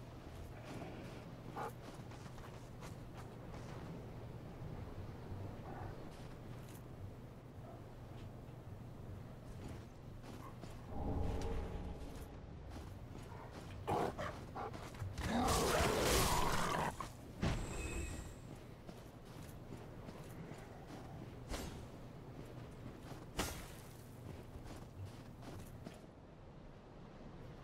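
Armored footsteps crunch on snow.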